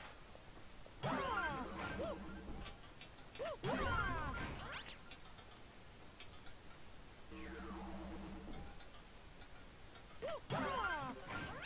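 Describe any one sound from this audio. Bright, chiming game sound effects ring out in short bursts.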